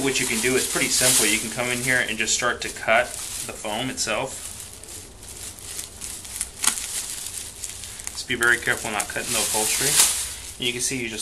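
Scissors snip through a plastic bag.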